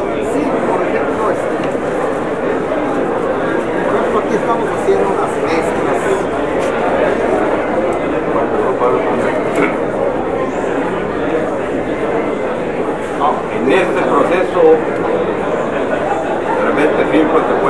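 A crowd murmurs and chatters throughout.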